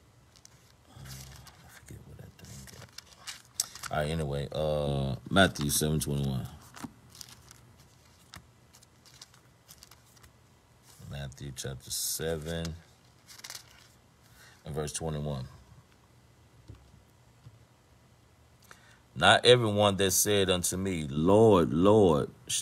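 A middle-aged man speaks with animation close to a phone microphone, with pauses.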